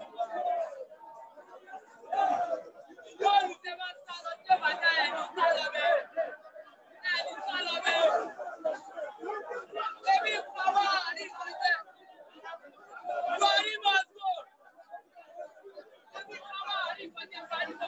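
A young man shouts with animation close by.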